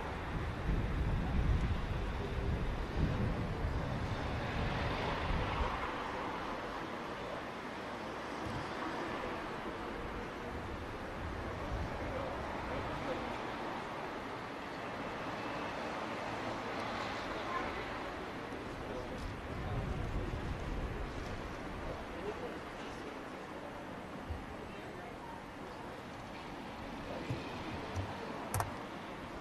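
Wind rumbles in gusts across the microphone outdoors.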